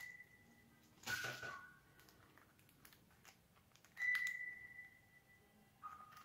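A plastic case clicks and taps as it is handled.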